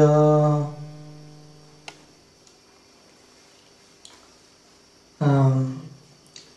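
A man chants long, held notes into a microphone, with pauses between them.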